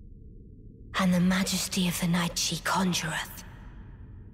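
A woman speaks slowly and calmly in a low voice, close by.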